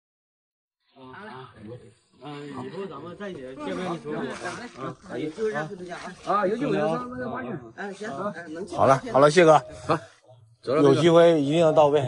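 A man answers with animation, close by.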